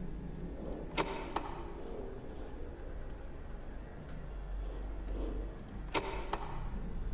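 A heavy metal lever clunks into place.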